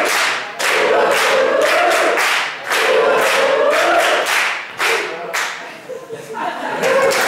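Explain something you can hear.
A young woman sings short vocal sounds.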